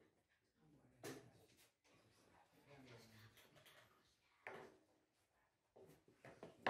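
A chess piece taps down on a board.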